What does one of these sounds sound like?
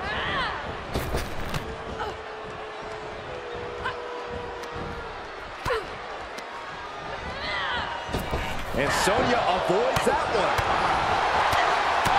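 Blows land with sharp thuds.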